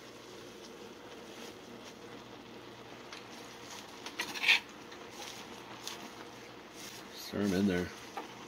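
Leafy greens rustle as they are pushed into a metal pot.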